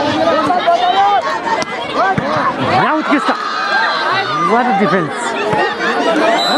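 A volleyball is smacked by a player's hands.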